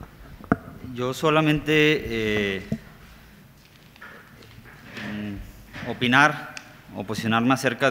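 A man speaks through a microphone in a measured tone.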